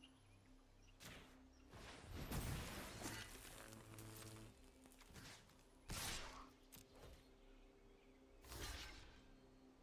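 Digital game sound effects whoosh and chime.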